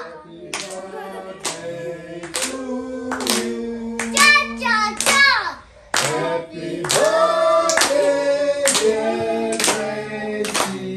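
A young girl sings happily close by.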